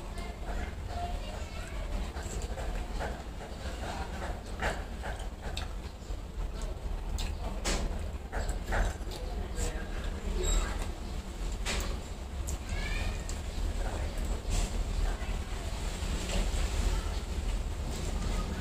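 A woman chews and smacks her lips close by.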